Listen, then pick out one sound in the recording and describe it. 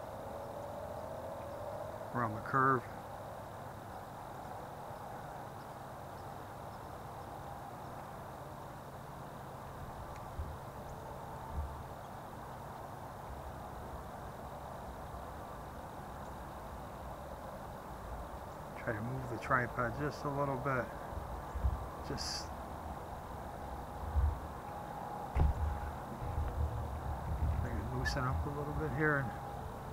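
A train engine rumbles in the distance as it slowly approaches.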